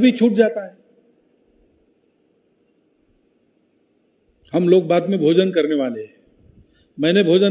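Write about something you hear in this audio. An elderly man speaks forcefully into a microphone, heard through a loudspeaker.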